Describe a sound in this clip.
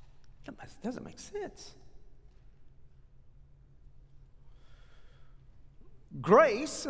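A middle-aged man speaks calmly through a headset microphone, with pauses.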